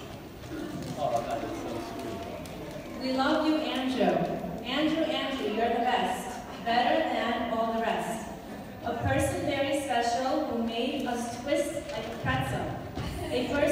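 A woman speaks into a microphone over a loudspeaker in a large echoing hall.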